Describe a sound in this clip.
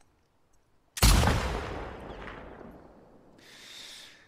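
A rifle fires a single loud shot that echoes and fades.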